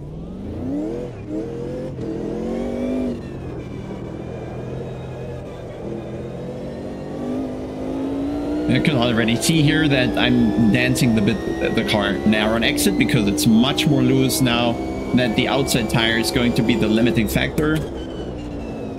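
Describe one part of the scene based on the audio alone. A racing car engine revs hard and shifts through gears.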